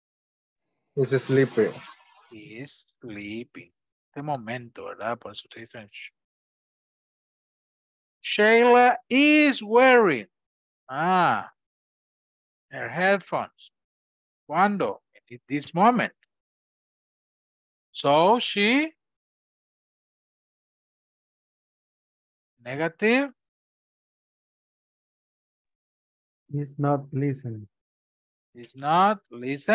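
A man speaks calmly and slowly, in short phrases with pauses, through a microphone on an online call.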